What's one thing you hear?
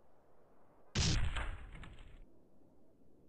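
A small plane smashes into a billboard with a loud crash.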